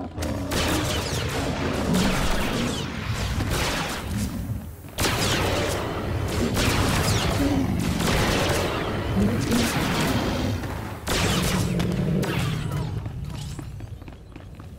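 Beasts snarl and roar.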